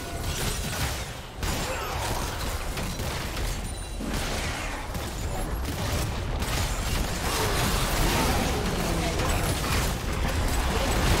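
Magic spells whoosh and burst in a fast fight.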